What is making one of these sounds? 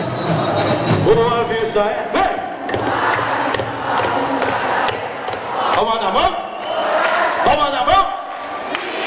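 A group of young people sing loudly together.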